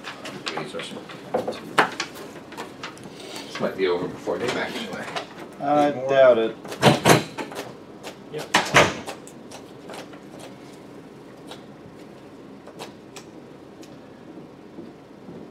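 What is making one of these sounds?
Cards tap and slide on a table.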